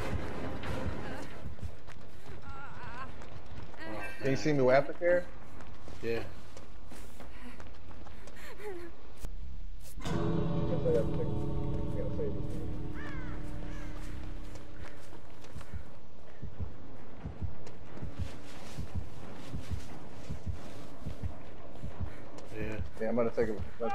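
Footsteps run quickly over dry leaves and grass.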